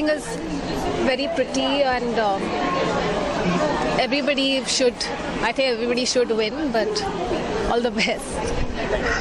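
A young woman speaks calmly into microphones up close.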